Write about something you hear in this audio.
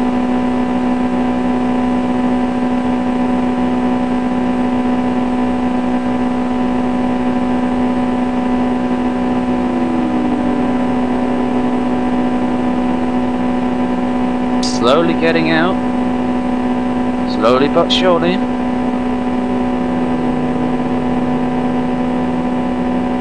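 A racing car engine drones steadily.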